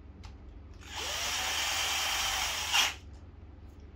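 A cordless drill whirs briefly.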